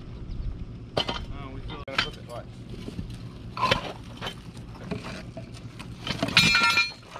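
A heavy rock scrapes and thuds against stone as it is levered.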